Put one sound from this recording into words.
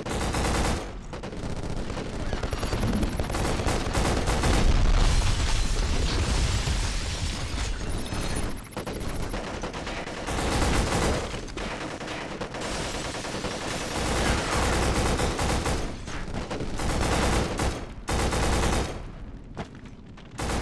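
A rifle fires in rapid bursts, close by.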